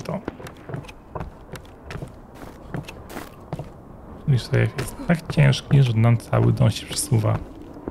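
Footsteps creak on wooden floorboards.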